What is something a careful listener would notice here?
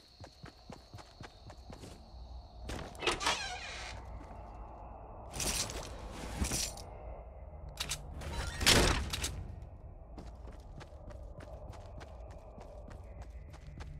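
Footsteps thud quickly and steadily.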